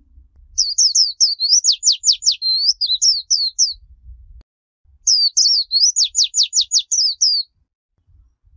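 A small songbird sings a rapid, high twittering song close by, in two bursts.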